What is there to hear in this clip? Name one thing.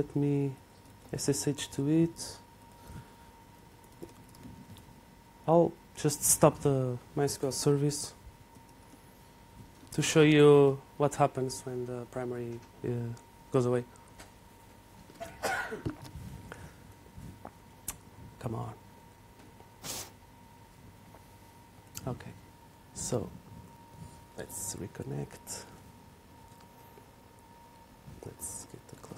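A man speaks calmly into a microphone in a large room, pausing often.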